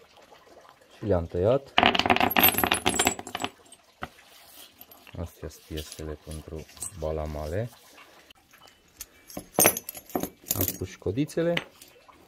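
Small metal pieces clink and rattle together.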